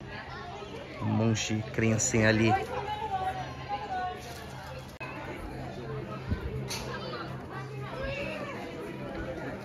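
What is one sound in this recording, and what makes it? Children and adults chatter and call out in a crowd outdoors.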